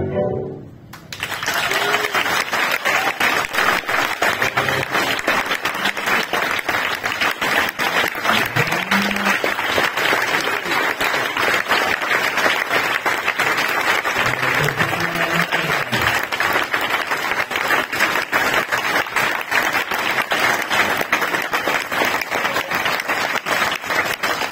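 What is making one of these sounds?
An audience claps and applauds steadily in a large room.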